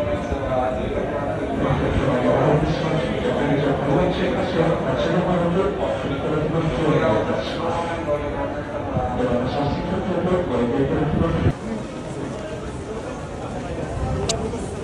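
A crowd of men and women murmurs and talks nearby.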